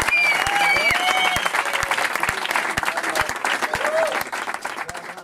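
Men and women in the audience whoop and cheer.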